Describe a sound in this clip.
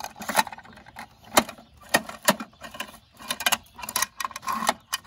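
A plastic toy lever clicks and clacks as a hand works it.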